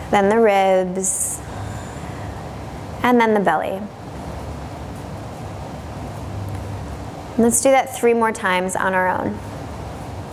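A woman speaks calmly and softly into a microphone, with pauses.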